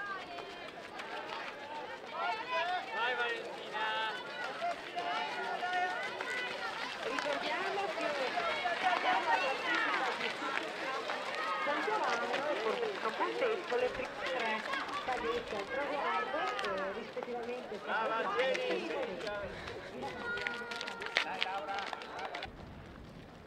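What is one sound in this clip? A crowd of spectators cheers and shouts encouragement outdoors.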